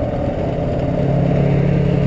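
A quad bike engine passes close by.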